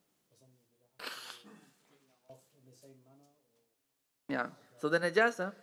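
A young man sniffs and sobs.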